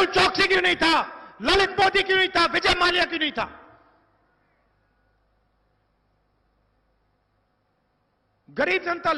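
A man speaks forcefully through a microphone and loudspeakers, with echo.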